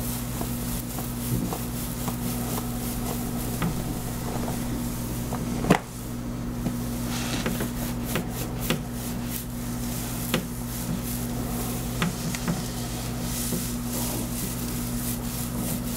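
Fingers scrub and squelch through wet, soapy hair.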